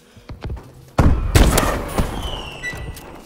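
An explosion booms in the distance.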